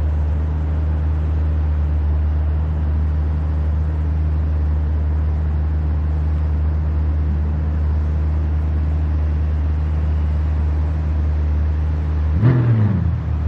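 A race car engine idles with a deep steady rumble.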